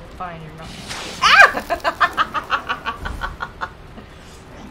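A young woman laughs loudly into a close microphone.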